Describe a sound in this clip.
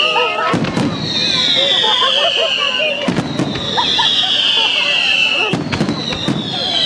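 Fireworks crackle and sizzle overhead.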